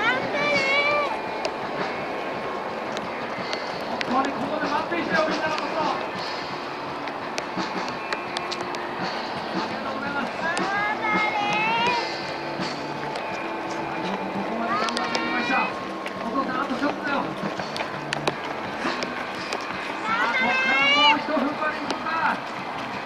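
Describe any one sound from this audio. Many runners' feet patter on a paved road.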